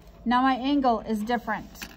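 A pen scratches lightly on paper.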